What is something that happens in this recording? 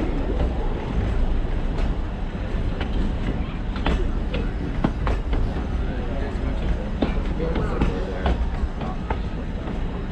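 Train wheels clack on the rail joints.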